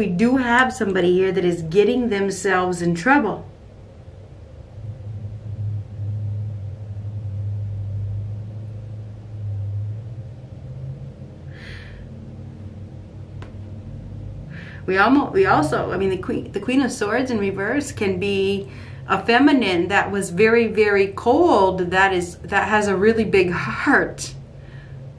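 A middle-aged woman speaks quietly and haltingly close to a microphone.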